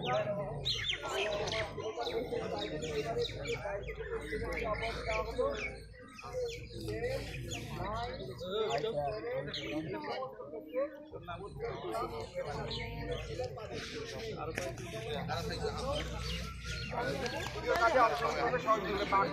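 A large crowd of young people chatters all around, close by.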